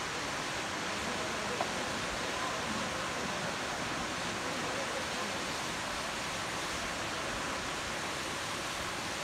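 A waterfall roars steadily into a pool.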